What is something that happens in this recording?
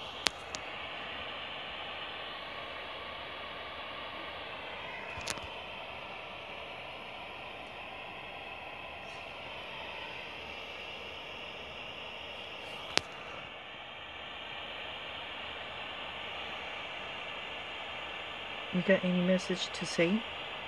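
Radio static hisses and crackles steadily from a small speaker.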